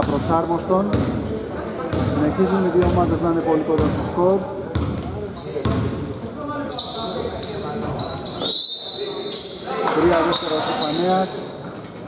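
Men shout to one another across the court.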